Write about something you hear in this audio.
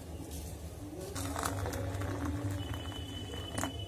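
Hot tea pours into a glass cup with a splashing gurgle.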